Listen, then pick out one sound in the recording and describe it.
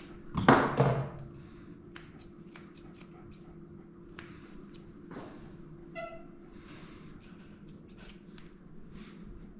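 Scissors snip through fur in short, quick cuts.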